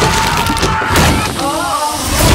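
A man screams loudly up close.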